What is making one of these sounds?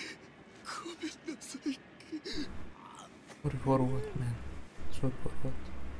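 A man pleads in a pained, desperate voice.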